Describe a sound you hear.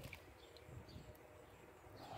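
Tomatoes plop from a can into a pot.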